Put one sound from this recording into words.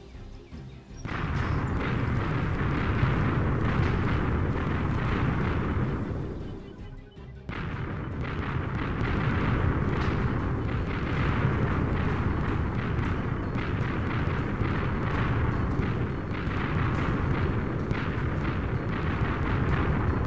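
Fiery meteors rumble and crash down with a dense, roaring explosion noise.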